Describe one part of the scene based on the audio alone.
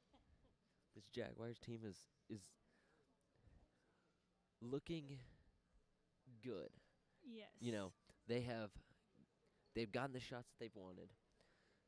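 A man speaks loudly and urgently to a group nearby.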